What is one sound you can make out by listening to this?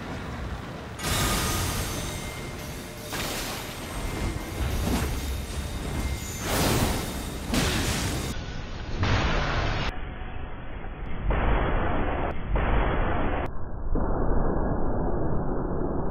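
A magic spell bursts with loud crackling blasts.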